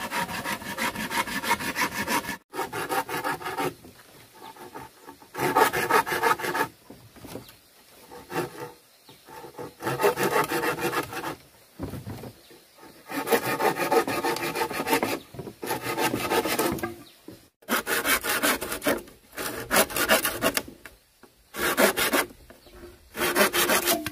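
A blade scrapes rapidly against bamboo in repeated bursts.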